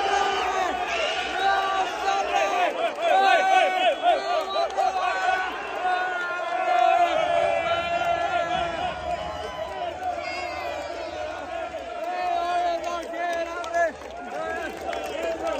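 A young man shouts and cheers excitedly close by.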